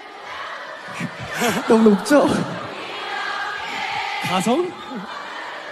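A young man speaks and laughs into a microphone, heard through loudspeakers.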